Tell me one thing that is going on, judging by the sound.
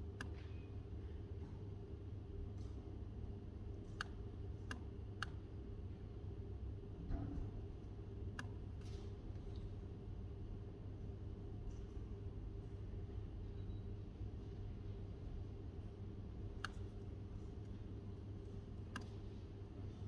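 Laptop keys click now and then under typing fingers.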